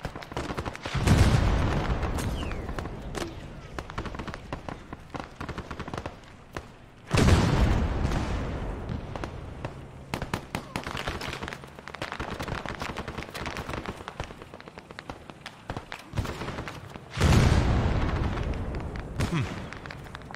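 Heavy explosions boom and rumble away in a forest.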